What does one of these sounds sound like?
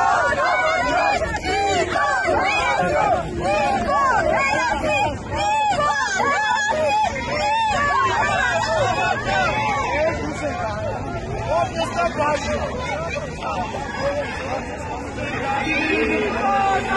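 A crowd of young women chant and shout loudly, close by, outdoors.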